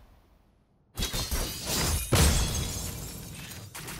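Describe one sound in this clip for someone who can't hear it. Glass shatters with a loud crash.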